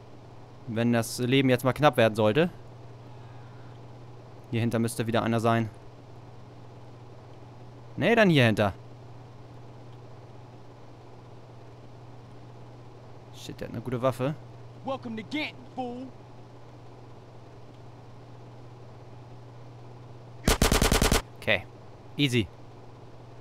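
A man talks with animation into a close microphone, in short bursts.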